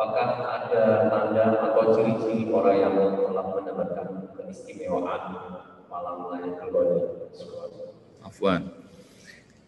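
A man speaks steadily through an online call microphone.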